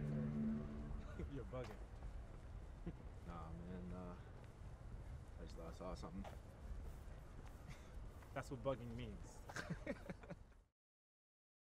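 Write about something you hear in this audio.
Young men talk and laugh casually nearby, outdoors.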